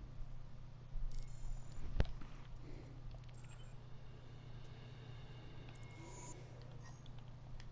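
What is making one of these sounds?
Short electronic menu chimes and clicks sound as options are selected.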